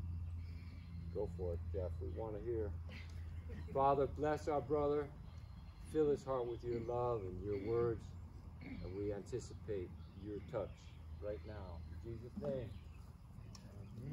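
An elderly man talks calmly outdoors.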